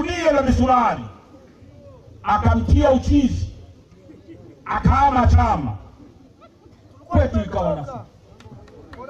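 A man shouts a speech into a microphone through loudspeakers, in bursts.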